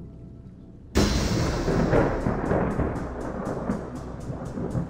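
A firework fizzes and crackles loudly.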